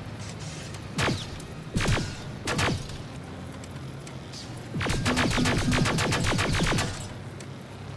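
A rifle fires single shots and then a rapid burst.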